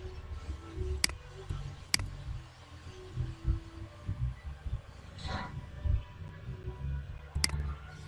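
A short, bright game click sounds a few times.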